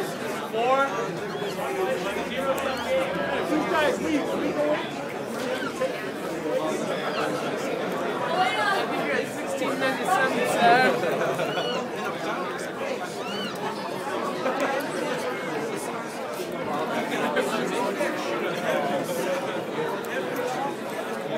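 A large crowd chatters and shouts nearby outdoors.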